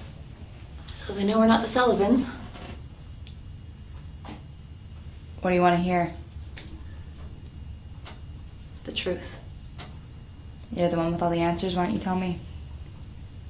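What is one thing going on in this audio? A woman speaks calmly and close by in short bursts with pauses.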